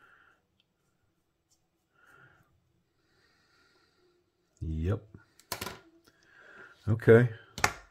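A small screwdriver turns screws in a metal knife handle.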